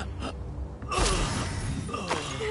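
A body thuds onto wooden planks.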